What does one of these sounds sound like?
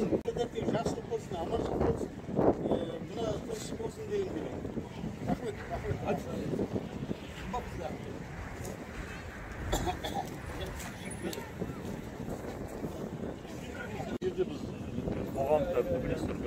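Several men talk nearby outdoors, their voices overlapping.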